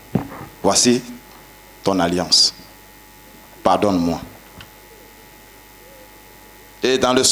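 A man speaks with animation through a microphone and loudspeakers, in short bursts with pauses.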